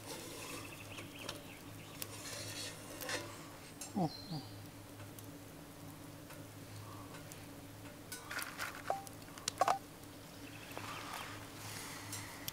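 A small wood fire crackles softly nearby.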